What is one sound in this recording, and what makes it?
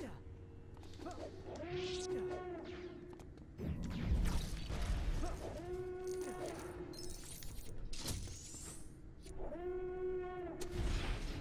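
A lightsaber hums and swooshes.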